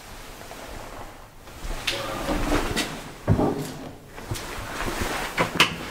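A metal lift gate rattles shut.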